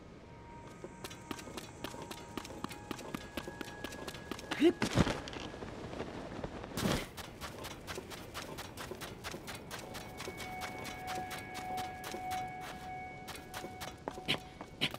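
Quick footsteps patter over sand.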